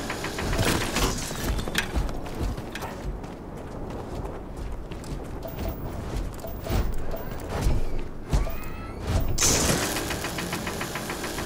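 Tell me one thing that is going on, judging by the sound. A mining laser buzzes and crackles steadily.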